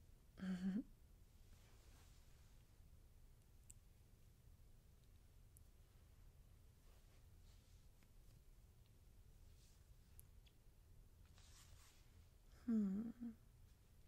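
A young woman speaks softly and briefly, close to a microphone.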